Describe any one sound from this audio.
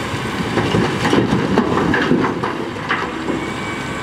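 Rocks clatter and thud into a truck bed.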